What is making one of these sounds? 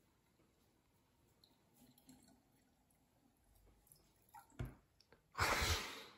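Water pours into a plastic container.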